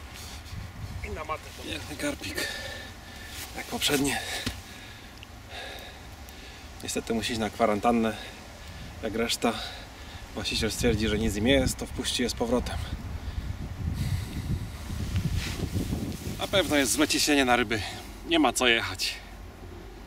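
A man talks calmly and cheerfully close by.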